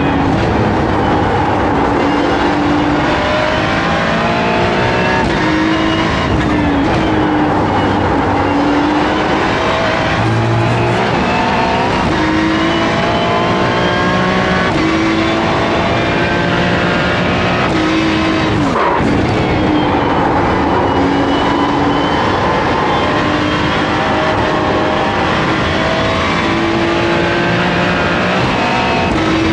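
A racing car engine roars, rising and falling in pitch as it shifts gears, heard through loudspeakers.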